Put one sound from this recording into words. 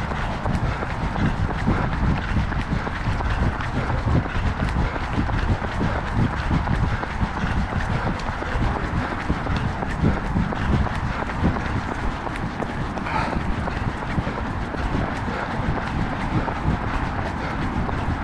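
Running footsteps patter steadily on a paved path.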